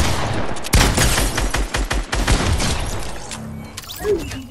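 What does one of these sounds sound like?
Rapid gunshots ring out in a video game.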